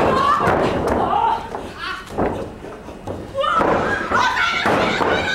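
A crowd shouts and cheers in a large hall.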